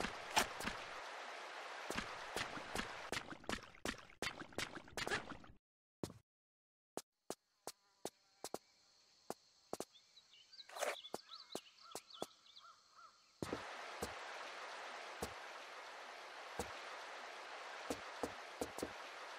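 Footsteps run quickly over rock.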